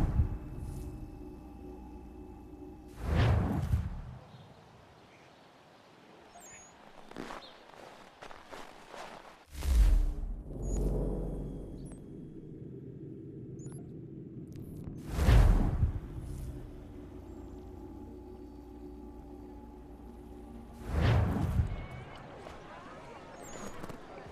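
Wind howls in strong gusts.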